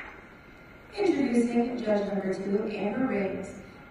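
A young woman speaks calmly into a microphone in a large hall.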